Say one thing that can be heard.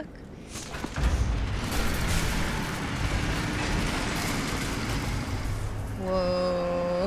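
Heavy doors grind and rumble open.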